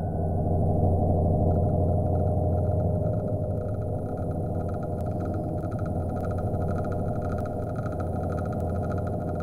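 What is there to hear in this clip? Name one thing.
A spaceship's engines hum with a low, steady rumble.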